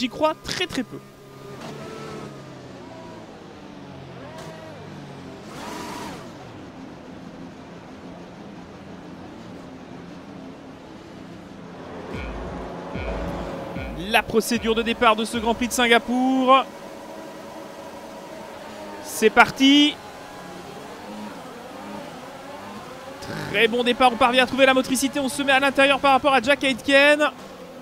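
A racing car engine drones and revs.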